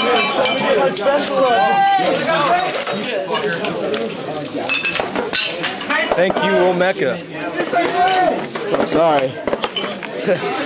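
A crowd of young people shouts and chatters loudly in an echoing room.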